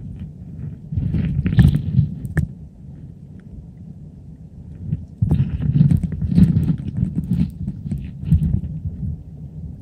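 Water sloshes and gurgles in muffled bursts, as if heard underwater.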